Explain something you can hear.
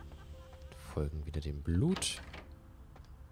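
A heavy door handle clicks and the door opens.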